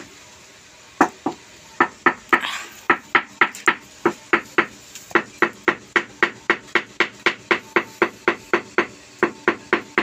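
A hammer handle taps rapidly and steadily on a floor tile.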